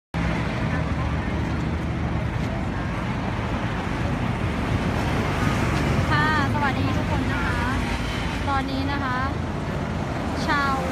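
Footsteps of a crowd walking on a road.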